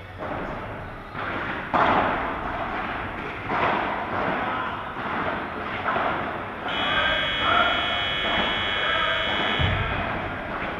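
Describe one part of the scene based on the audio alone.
Rackets strike a ball with sharp pops in a large echoing hall.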